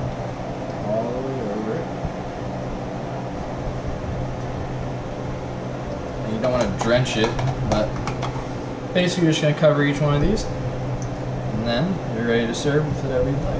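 A fork scrapes and clinks against a metal baking tray.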